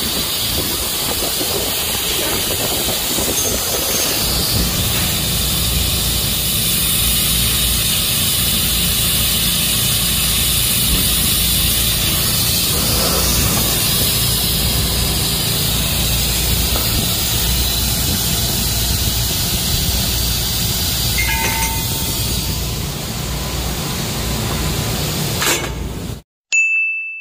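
A machine hums and hisses steadily.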